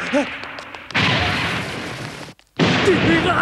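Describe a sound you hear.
A stone wall breaks apart with a crash.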